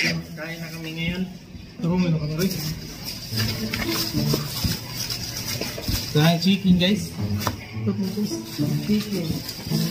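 Men talk nearby in a room.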